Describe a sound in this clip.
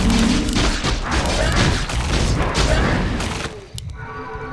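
Clashing battle effects crackle and boom loudly.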